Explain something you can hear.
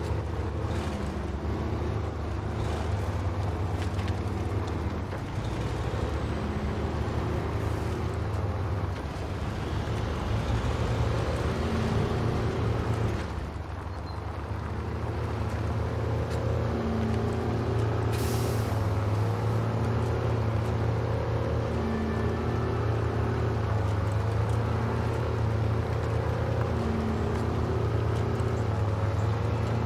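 Truck tyres crunch over rocks and gravel.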